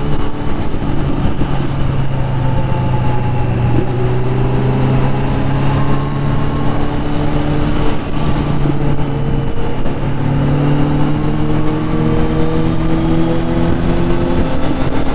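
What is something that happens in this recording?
A motorcycle engine hums steadily up close, rising and falling as it changes gear.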